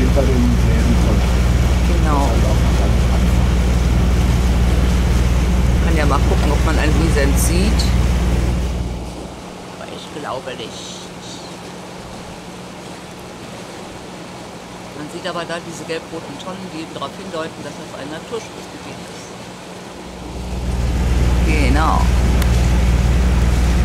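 A boat engine rumbles steadily nearby.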